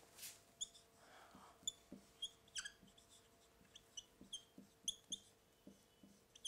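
A marker squeaks and taps against a whiteboard in short strokes.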